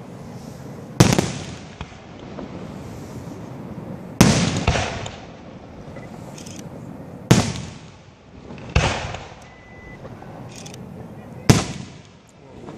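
Fireworks burst with loud, echoing booms.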